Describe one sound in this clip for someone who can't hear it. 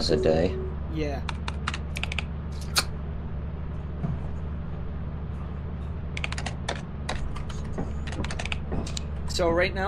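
Keys clatter rapidly on a keyboard.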